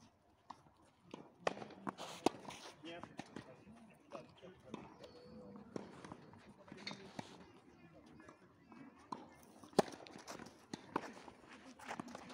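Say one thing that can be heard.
Tennis balls are struck with rackets in sharp pops.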